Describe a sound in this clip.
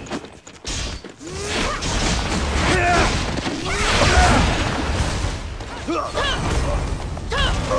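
Magic blasts and sword strikes crash and whoosh in a fight.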